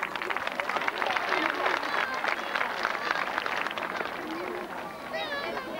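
A large crowd claps outdoors.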